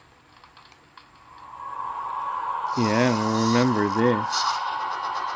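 A magical shimmering hum swells and grows louder.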